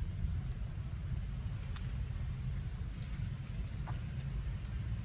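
A monkey chews soft fruit with wet smacking sounds close by.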